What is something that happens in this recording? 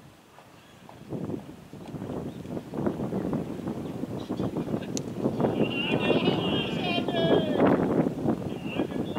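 Men call out and talk loudly outdoors.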